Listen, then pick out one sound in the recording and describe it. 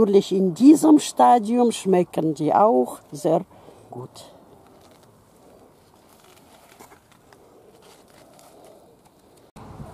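Corn husks rustle as hands peel them back.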